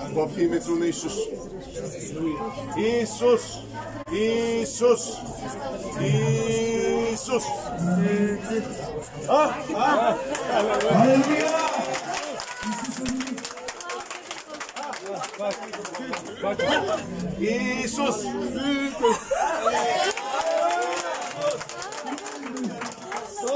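An elderly man speaks with feeling, close by.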